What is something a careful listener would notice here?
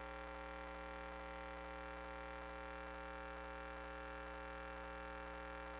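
A small motor whirs steadily as a crawler rolls through a pipe.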